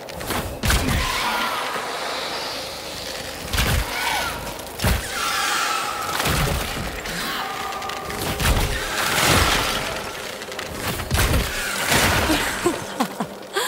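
Magic blasts burst and crackle loudly.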